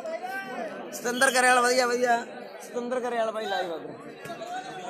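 Men shout and cheer loudly from the crowd.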